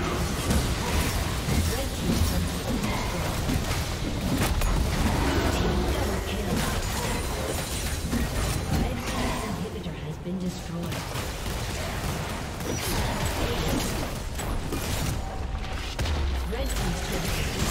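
Game spell effects crackle and whoosh during a battle.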